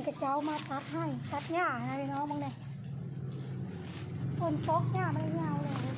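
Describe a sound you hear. Leafy plants rustle as they are pulled up by hand.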